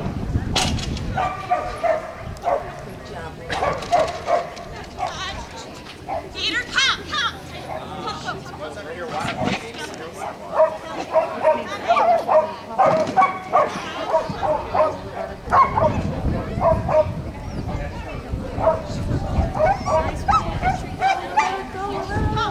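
A woman calls out commands to a dog with animation, outdoors in the open.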